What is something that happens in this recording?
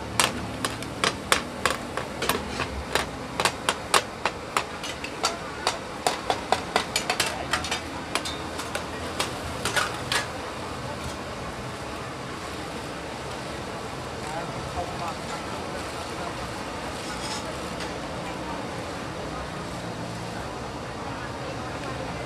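Gas burners roar steadily.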